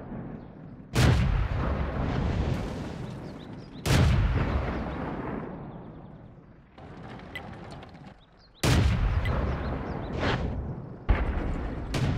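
A heavy cannon fires with loud booms that rumble away.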